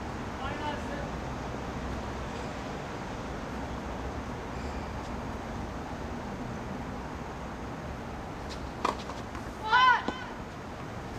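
Tennis shoes squeak on a hard court.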